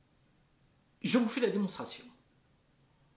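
An elderly man speaks calmly and close by, in short bursts.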